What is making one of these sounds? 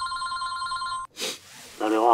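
A phone rings with a steady electronic tone.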